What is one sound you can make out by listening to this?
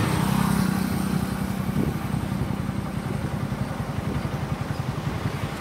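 A motorcycle engine hums nearby.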